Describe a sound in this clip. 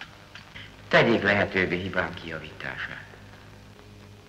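A middle-aged man answers in a strained voice.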